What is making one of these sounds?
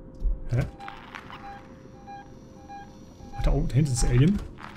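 A motion tracker beeps steadily at even intervals.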